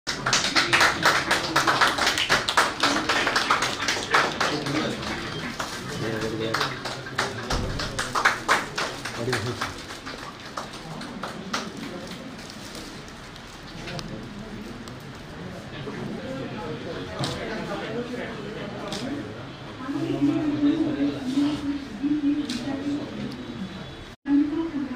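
A group of men chatter and murmur nearby.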